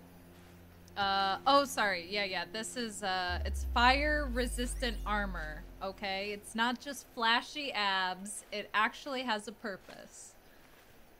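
A young woman talks with animation, close to a microphone.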